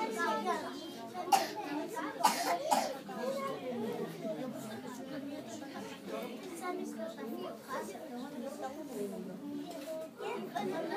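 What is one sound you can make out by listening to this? Young children chatter and talk over one another in a room.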